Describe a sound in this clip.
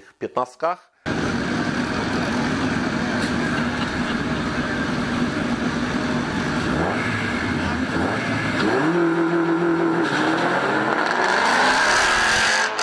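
Car engines idle and rev loudly.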